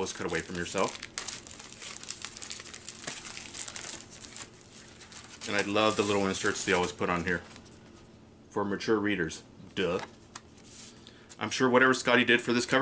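A book rustles as it is handled.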